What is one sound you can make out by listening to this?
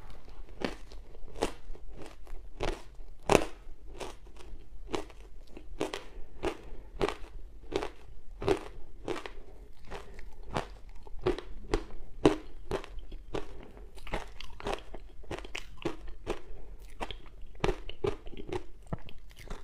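A young woman crunches and chews crumbly food close to a microphone.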